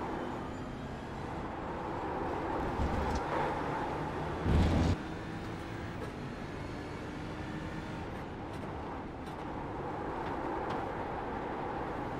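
A racing car engine roars steadily.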